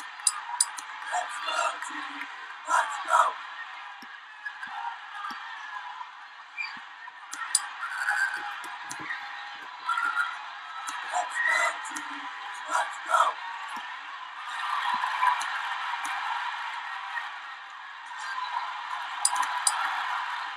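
Game discs knock against a ball with short clicks.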